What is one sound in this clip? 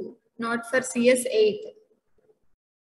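A woman speaks briefly through an online call.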